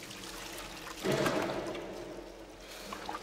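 Water pours and splashes onto a man's body.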